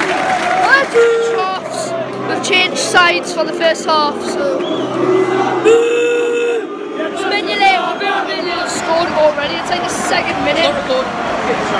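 A young boy sings loudly close by.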